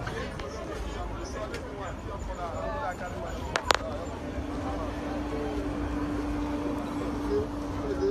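Men talk with one another nearby, outdoors.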